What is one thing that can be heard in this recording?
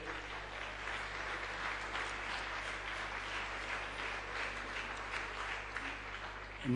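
An elderly man reads out a speech calmly through a microphone and loudspeakers.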